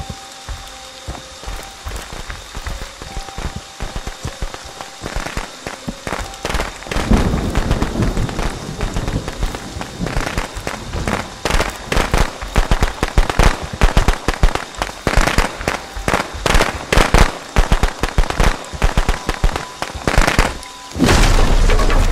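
Footsteps crunch over the forest floor.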